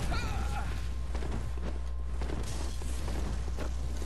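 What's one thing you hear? Blades slash and clash in a close fight.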